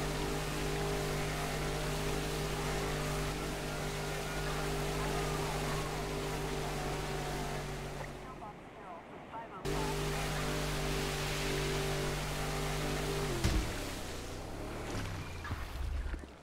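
Water sprays and hisses behind a speeding boat.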